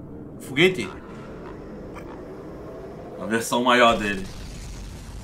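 A man exclaims loudly through a microphone.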